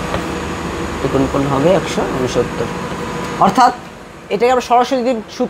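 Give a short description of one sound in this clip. A man speaks calmly, explaining.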